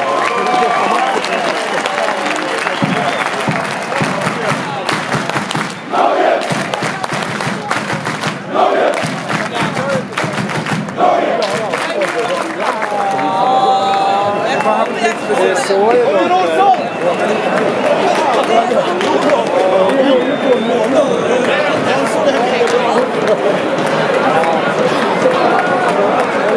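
A large stadium crowd sings and chants loudly outdoors.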